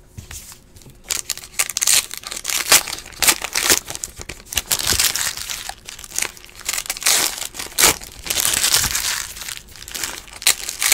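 Foil wrappers crinkle and tear as packs are opened by hand.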